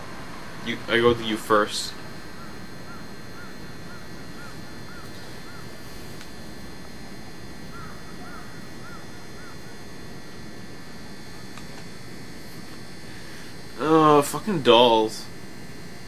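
A young man speaks briefly and with animation into a close microphone.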